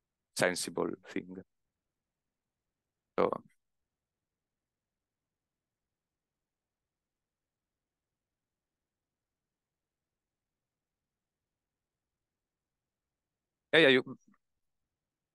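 A young man speaks calmly through a clip-on microphone, in short bursts with long pauses.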